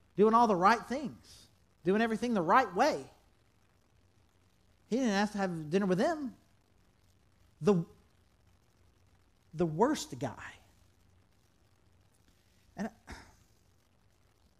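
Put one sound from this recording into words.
A middle-aged man speaks expressively into a microphone, with pauses between phrases.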